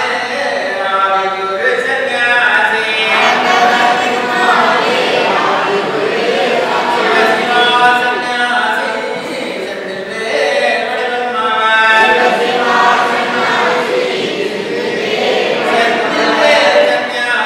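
A group of men chant a prayer together through a microphone in an echoing hall.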